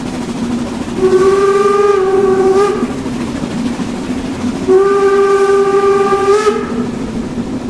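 A steam locomotive whistle blows twice, loud and long.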